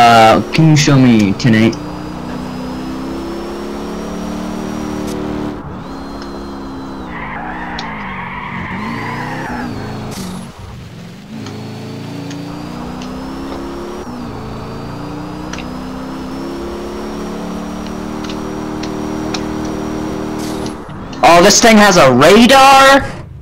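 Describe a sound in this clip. A truck engine revs hard and roars, shifting gears over and over.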